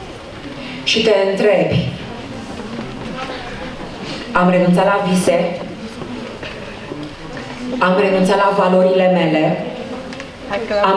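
A young man speaks with animation into a microphone over loudspeakers in a large echoing hall.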